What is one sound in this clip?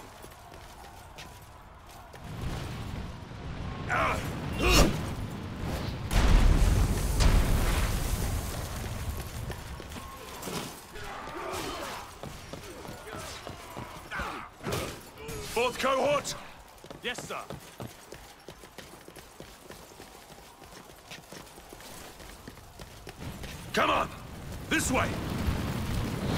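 Armoured footsteps thud and clink as a soldier runs.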